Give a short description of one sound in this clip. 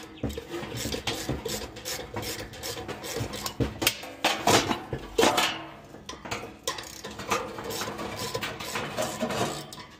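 A screwdriver scrapes and clicks against a metal fan housing.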